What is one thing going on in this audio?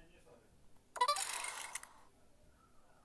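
A cheerful game jingle plays.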